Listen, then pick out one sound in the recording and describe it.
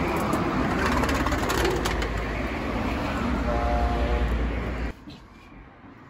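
A door slides open with a rattle.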